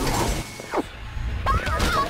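A magical blast whooshes and swirls.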